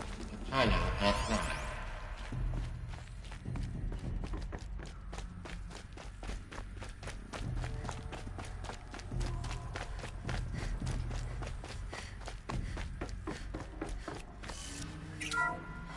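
Quick footsteps run across a hard metal floor.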